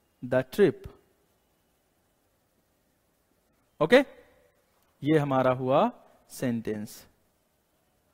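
A young man speaks calmly and clearly into a close microphone, in short phrases with pauses.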